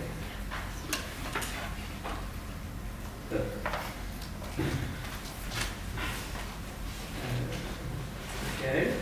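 A man speaks calmly at the front of a large room, slightly echoing.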